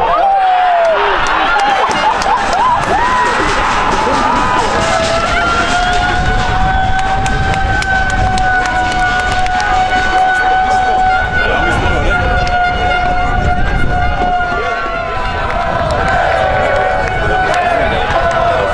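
A crowd of football spectators cheers and shouts outdoors.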